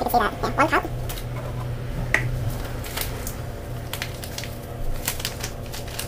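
A paper bag rustles as it is handled.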